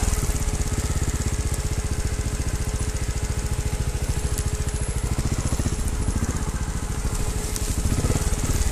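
A dirt bike engine rumbles with a rapid, steady pulse.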